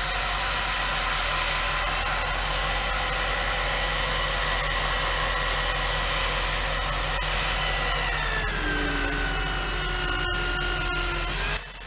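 A power drill whines steadily, then drops to a lower pitch and stops.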